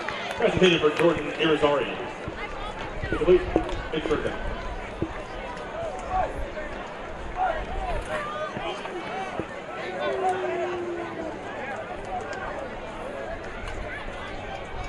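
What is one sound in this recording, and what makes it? A crowd murmurs and cheers in the distance.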